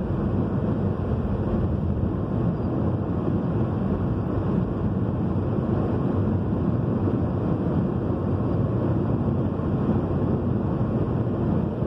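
A car's engine hums steadily from inside the car.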